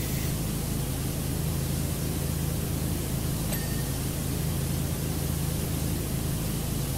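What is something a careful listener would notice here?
A pressure washer sprays water in a steady hiss.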